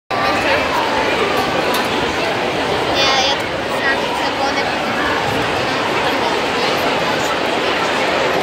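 Music plays loudly over loudspeakers in a large echoing hall.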